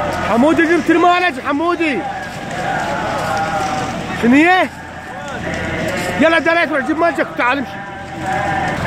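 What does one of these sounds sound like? Men shout and chant loudly nearby.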